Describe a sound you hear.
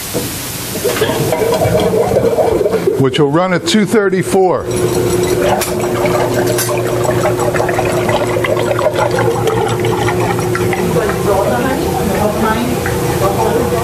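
A machine whirs steadily as it churns.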